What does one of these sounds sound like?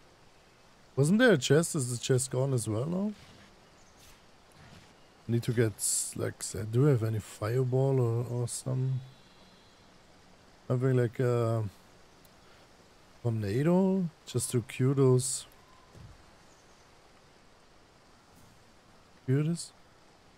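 A young man talks casually and animatedly into a close microphone.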